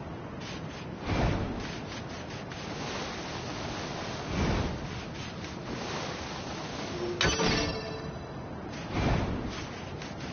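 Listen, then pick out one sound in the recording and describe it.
A sword whooshes through the air.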